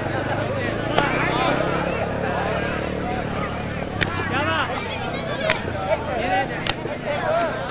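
A hand slaps against bare skin.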